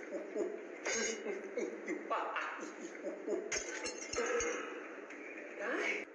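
A young man laughs loudly and at length.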